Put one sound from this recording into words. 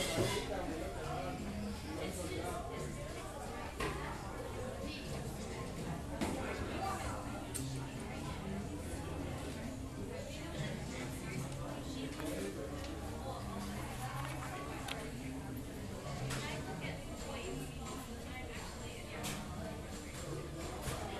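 Many people chatter in a steady murmur in an echoing room.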